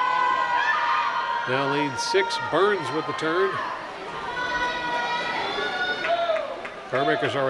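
Swimmers splash through water in a large echoing hall.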